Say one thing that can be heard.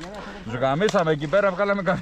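A magazine clicks into a rifle.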